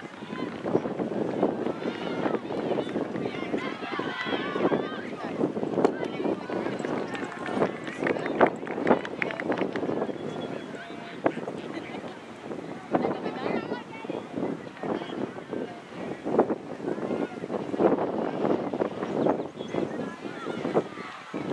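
Soccer players shout and call to each other across an open grass field.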